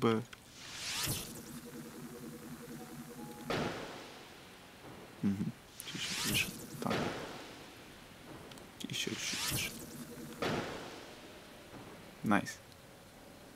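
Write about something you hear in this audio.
Arrows whoosh as they are shot from a bow.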